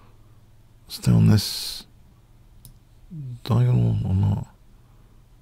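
An older man speaks briefly and with animation, close to a microphone.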